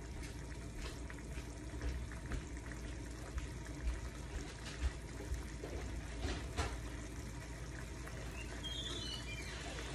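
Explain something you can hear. Eggs sizzle softly in a hot pan.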